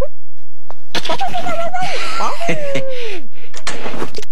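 A cartoon dog barks playfully.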